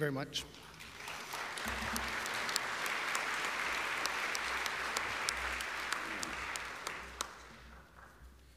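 A small audience applauds in a hall.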